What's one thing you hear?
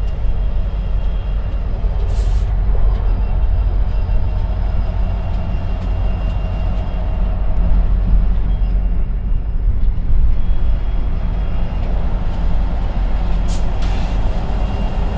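A diesel locomotive engine rumbles low and steadily nearby.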